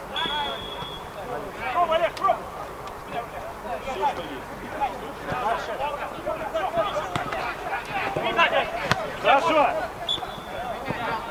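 A referee's whistle blows short and sharp.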